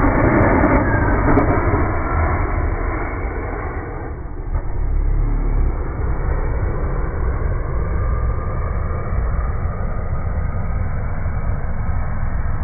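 A car engine revs hard in the distance.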